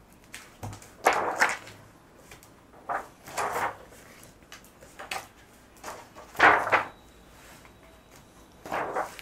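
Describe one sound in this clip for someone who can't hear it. Stiff album pages flip and swish as they are turned by hand.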